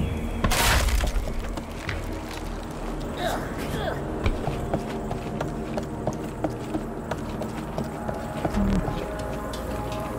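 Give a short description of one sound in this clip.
Footsteps patter quickly across wooden planks.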